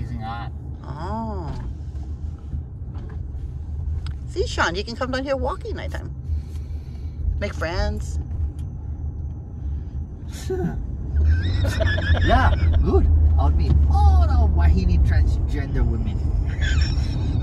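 A man speaks casually close by inside the car.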